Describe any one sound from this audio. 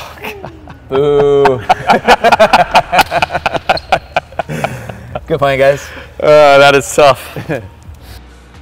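Two men talk and laugh with animation close to a microphone.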